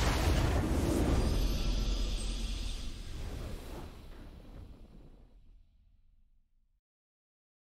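A triumphant victory fanfare swells and fades out.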